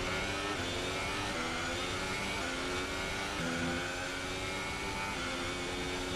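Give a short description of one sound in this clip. A racing car engine screams at high revs, its pitch rising and dropping sharply with each gear change.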